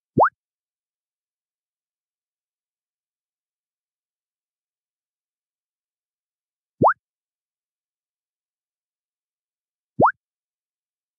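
A short rising electronic blip sounds a few times.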